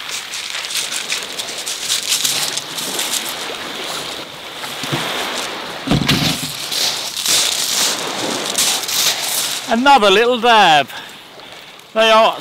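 Small waves wash and fizz over a pebble beach.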